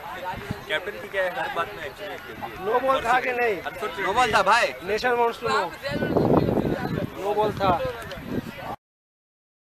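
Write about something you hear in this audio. Young men talk with animation close by, outdoors.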